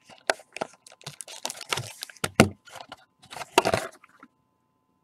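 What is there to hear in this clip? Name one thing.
A cardboard box lid rustles as it is opened.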